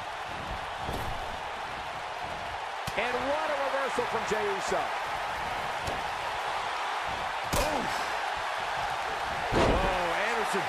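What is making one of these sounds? Heavy bodies thud onto a wrestling ring.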